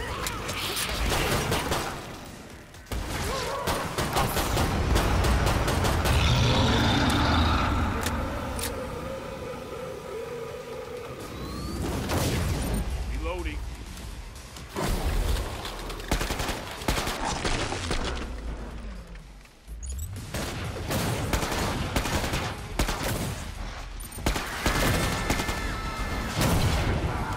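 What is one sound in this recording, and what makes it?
Guns fire in rapid bursts of sharp shots.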